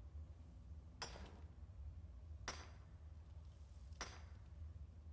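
A pickaxe strikes rock at a steady pace.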